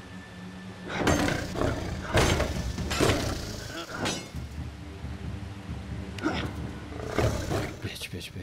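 Sharp blasts and hits crash in quick bursts.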